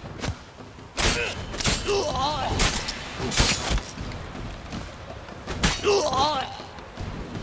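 Blades clash and strike in a sharp fight.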